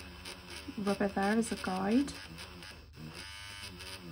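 A small electric eraser buzzes against paper.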